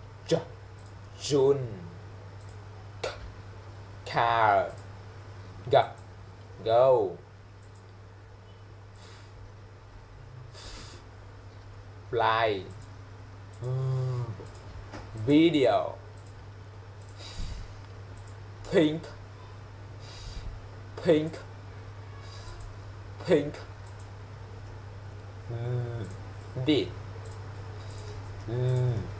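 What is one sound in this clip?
A young man speaks close by in short, separate phrases with pauses between them.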